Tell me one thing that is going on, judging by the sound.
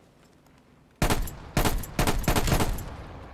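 A rifle fires several loud bursts of gunshots.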